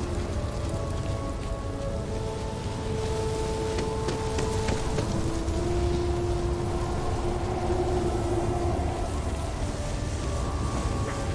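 A fire crackles and hisses nearby.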